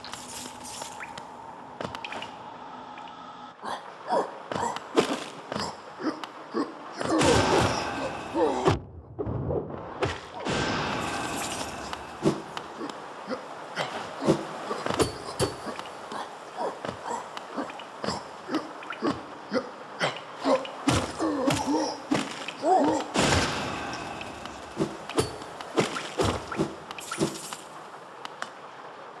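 Light footsteps patter quickly on stone.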